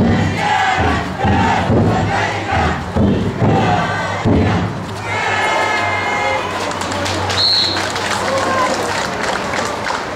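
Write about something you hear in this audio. A crowd of men chants and shouts rhythmically outdoors.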